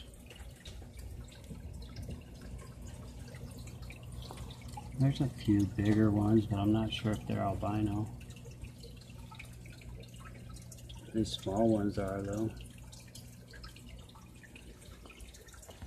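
An aquarium filter hums steadily.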